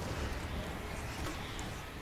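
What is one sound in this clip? Gunshots ring out.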